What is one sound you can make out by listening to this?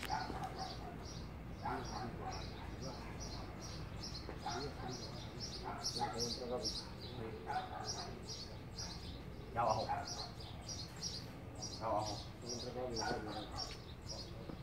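A pigeon coos softly nearby.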